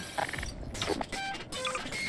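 A ray gun fires with an electric zap.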